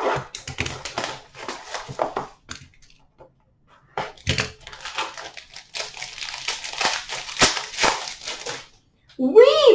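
Foil card packs rustle and crinkle as hands sort through them.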